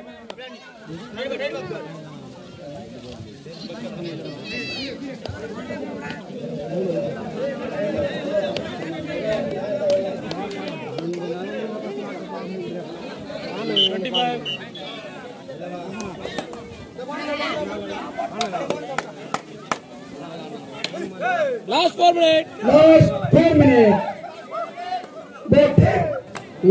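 A crowd of young men chatters and calls out outdoors.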